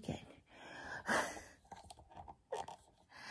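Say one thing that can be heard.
A middle-aged woman laughs close by.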